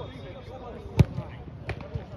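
A football is kicked hard with a thud.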